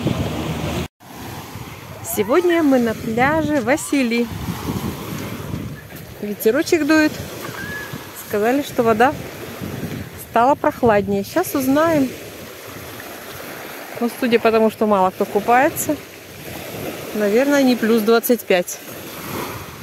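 Small waves wash and break onto a pebble beach.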